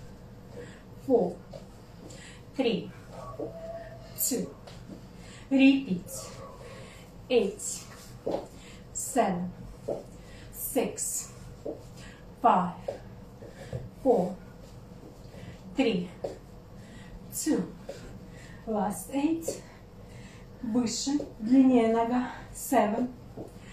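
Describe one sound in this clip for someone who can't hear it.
A woman speaks calmly in short phrases close by.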